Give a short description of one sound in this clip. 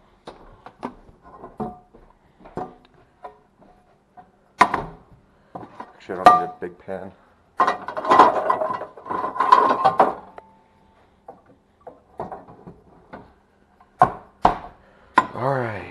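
Metal cookware clanks and clatters.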